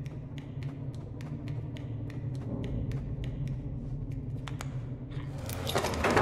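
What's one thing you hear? Light footsteps tap quickly on a hard floor.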